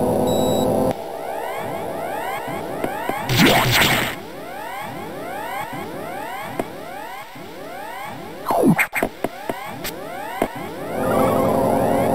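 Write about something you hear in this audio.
Eerie electronic video game music plays with soft falling chimes.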